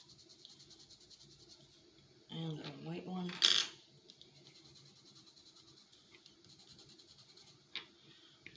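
A marker scratches and taps lightly on paper.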